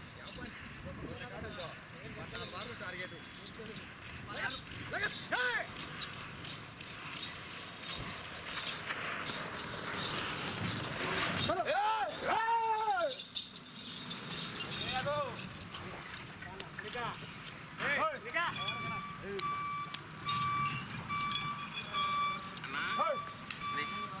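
Men shout loudly at bulls outdoors.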